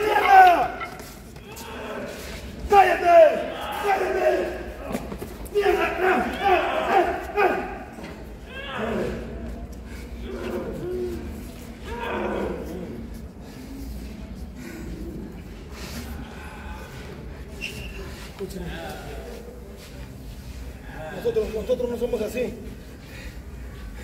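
A man shouts loudly nearby in a large echoing hall.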